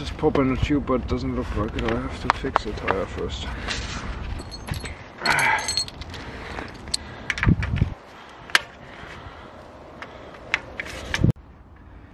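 A bicycle tyre creaks and rubs as hands work it onto a wheel rim.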